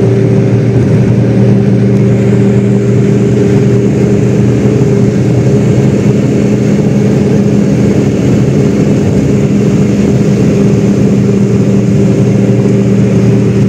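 A car engine hums at cruising speed, heard from inside the car.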